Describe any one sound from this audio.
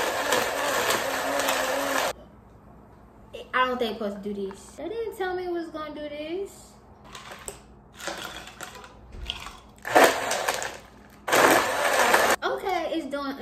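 A blender whirs loudly in short bursts.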